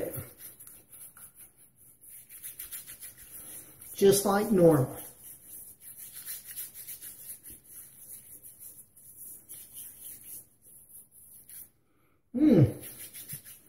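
Hands rub softly over a man's skin.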